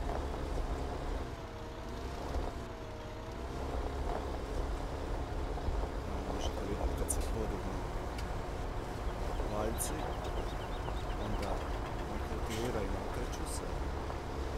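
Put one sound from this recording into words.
A cultivator scrapes and churns through soil.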